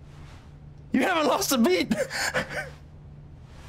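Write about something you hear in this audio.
A young man shouts and laughs with excitement nearby.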